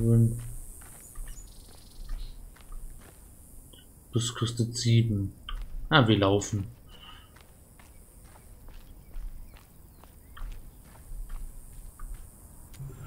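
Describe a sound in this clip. Footsteps crunch steadily on dry gravel.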